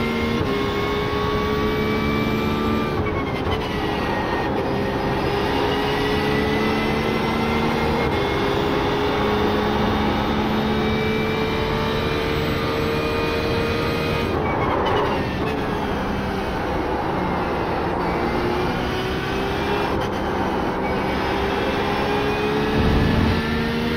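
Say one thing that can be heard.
A racing car engine roars at high revs, rising through the gears and dropping sharply as it shifts down.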